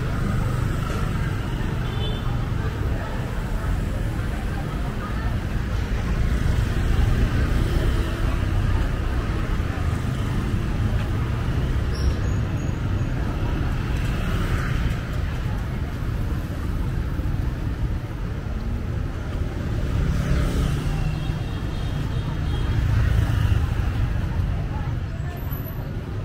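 Motorbikes hum and buzz past along a busy street.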